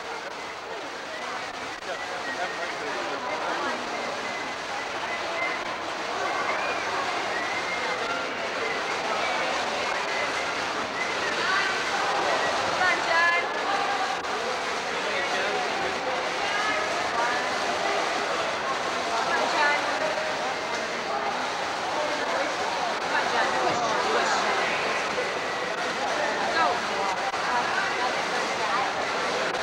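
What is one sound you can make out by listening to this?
A crowd cheers and shouts throughout a large echoing hall.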